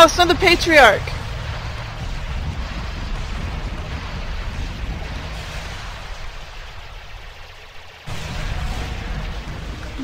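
Energy weapons fire with zapping bursts.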